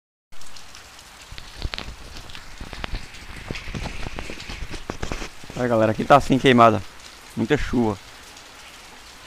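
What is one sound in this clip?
Rain patters and drips outdoors.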